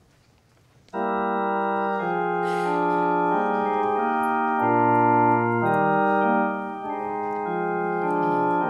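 An organ plays sustained chords.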